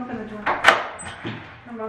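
A door latch clicks as a door is opened.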